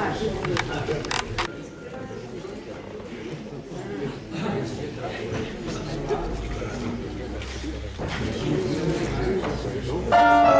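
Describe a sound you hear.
An audience murmurs quietly.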